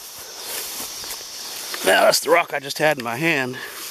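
Grass rustles as it is brushed through.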